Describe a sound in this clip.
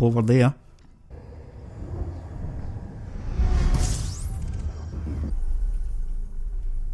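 A spacecraft engine rumbles and roars, swelling then easing off.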